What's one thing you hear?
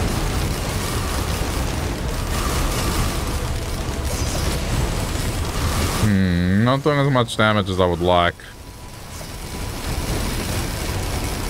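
Blasts and crackling energy bursts go off rapidly in a video game battle.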